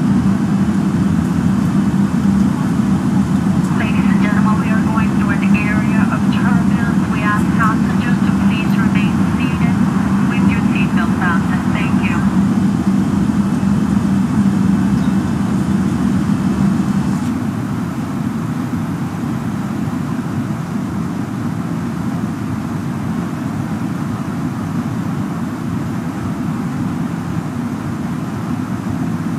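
A jet engine hums steadily in the cabin.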